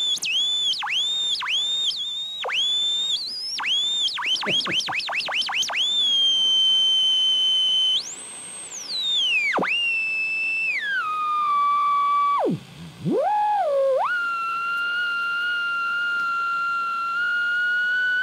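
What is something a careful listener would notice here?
A radio speaker emits a shrill electronic whistle that swoops up and down in pitch as the tuning is turned.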